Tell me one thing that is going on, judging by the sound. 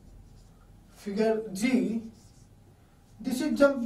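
A man speaks calmly nearby, in short phrases.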